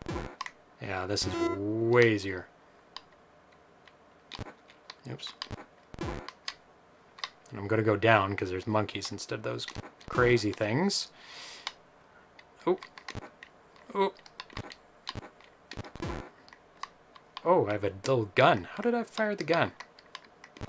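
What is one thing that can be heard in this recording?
Simple electronic video game blips and beeps sound in short bursts.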